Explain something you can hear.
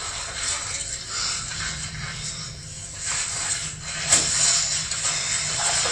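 A rope creaks as it is pulled tight.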